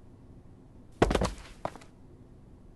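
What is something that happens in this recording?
A small plastic figure topples over with a clatter.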